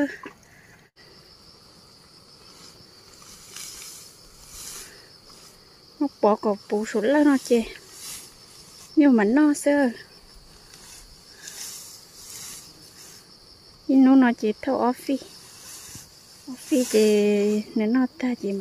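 Leafy grass rustles as a man gathers it by hand.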